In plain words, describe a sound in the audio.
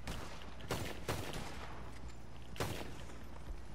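Gunshots crack outdoors in a few quick bursts.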